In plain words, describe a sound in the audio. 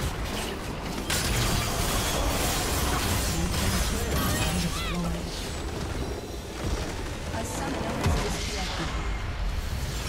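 Magic spells whoosh and crackle in a busy battle.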